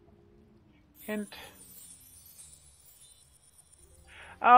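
A soft magical sparkle chimes as an item is found.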